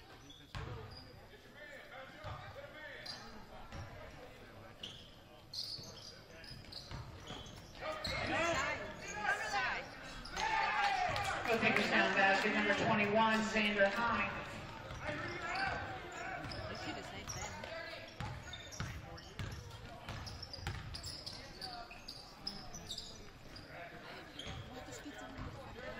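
A crowd of spectators talks and cheers in an echoing gym.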